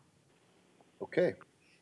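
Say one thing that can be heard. Another man speaks briefly over a microphone.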